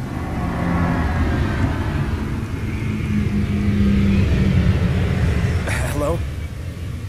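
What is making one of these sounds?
A huge airship's engines rumble and drone overhead.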